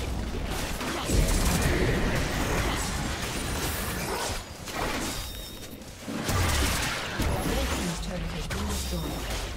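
Fantasy game spells blast and crackle during a battle.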